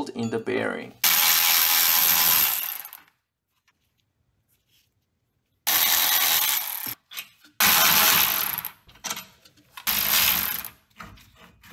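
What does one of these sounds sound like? A power ratchet whirs in short bursts.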